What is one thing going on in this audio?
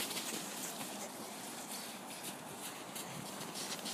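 Footsteps crunch in deep snow.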